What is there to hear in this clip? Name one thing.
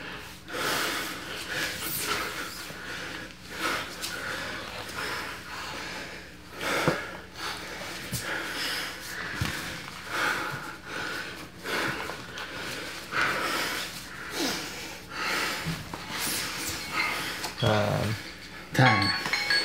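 A man talks steadily, close by.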